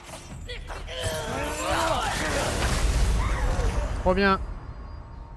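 Heavy axe blows strike and clash in a fierce fight.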